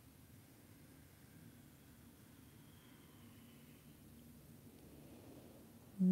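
Clothing rustles softly against a mat.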